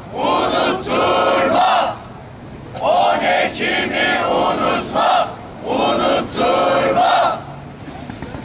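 A crowd of men and women chants slogans loudly in unison outdoors.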